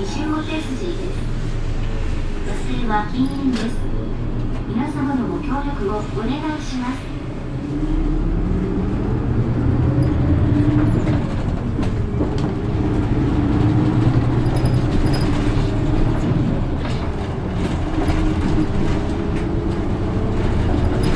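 A tram's wheels rumble and rattle on the rails.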